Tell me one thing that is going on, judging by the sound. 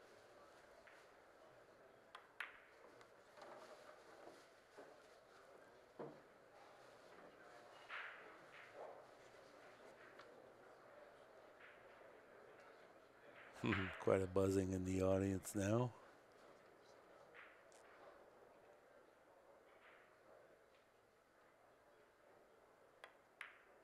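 A quiet audience murmurs softly.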